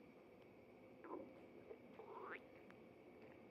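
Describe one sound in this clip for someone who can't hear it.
A cat meows softly up close.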